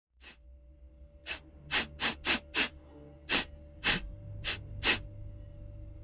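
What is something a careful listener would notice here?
A man sniffs sharply, close up, several times.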